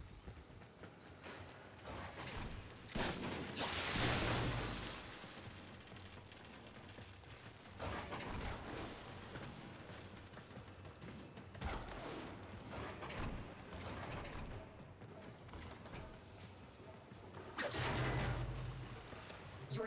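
Quick footsteps clank on metal floors.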